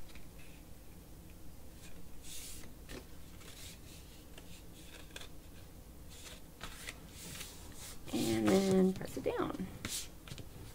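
Stiff card rustles and scrapes as hands fold and handle it.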